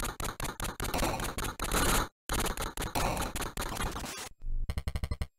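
Rapid electronic gunfire crackles in a retro video game.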